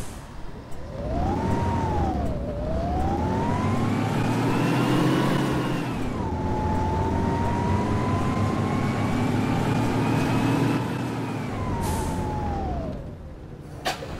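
A bus engine revs up and down as it accelerates through the gears.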